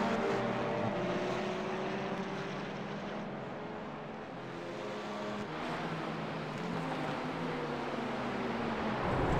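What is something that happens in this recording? Racing car engines roar at high revs, rising and falling in pitch.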